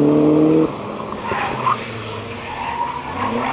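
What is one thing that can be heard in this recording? Tyres screech on tarmac as a car spins its wheels.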